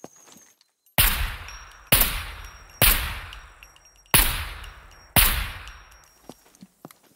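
A rifle fires several loud shots that echo and fade.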